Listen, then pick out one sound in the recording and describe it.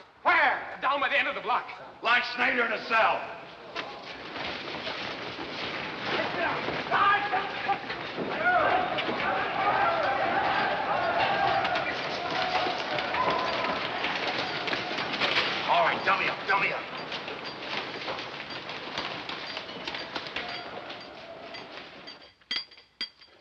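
A large crowd of men shouts and roars loudly, echoing around them.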